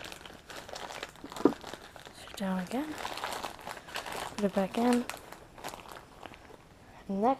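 A fabric case rustles and scrapes as hands handle it.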